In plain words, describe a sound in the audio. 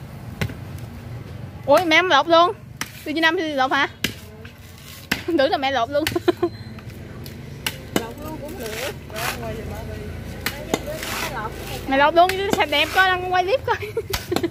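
A blade chops into a coconut husk with dull knocks.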